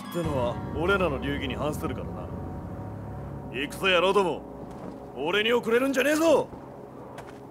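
A young man speaks with strong emotion, close by.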